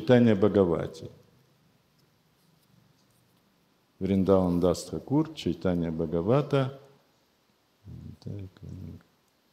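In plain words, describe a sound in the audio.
An elderly man reads aloud calmly and close by, with pauses.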